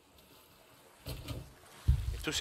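Water splashes as barrels drop into the sea.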